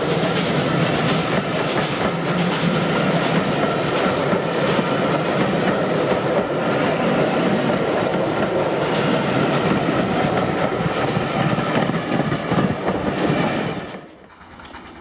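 A train rumbles past close by, its wheels clattering on the rails.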